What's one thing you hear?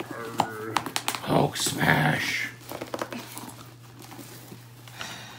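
Paper crinkles and rustles as a bag is torn open.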